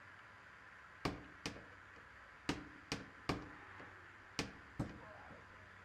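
A hammer pounds nails into wooden boards in sharp, ringing blows.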